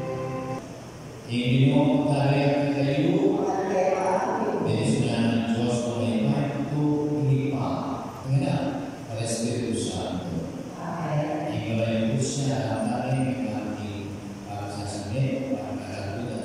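A keyboard plays along with the choir.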